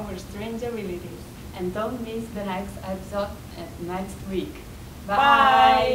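A young woman speaks cheerfully close to a microphone.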